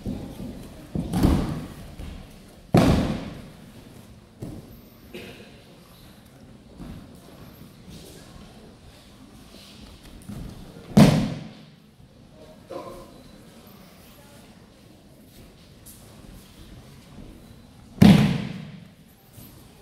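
Bodies slam heavily onto a padded mat, echoing in a large hall.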